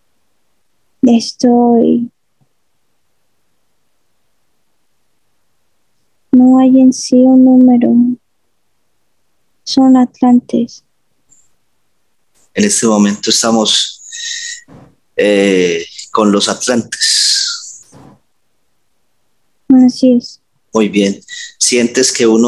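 An elderly woman speaks over an online call.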